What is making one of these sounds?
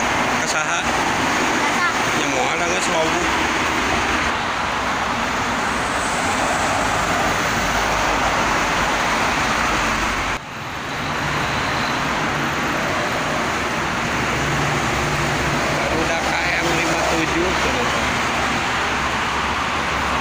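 Steady traffic roars past on a busy highway close by.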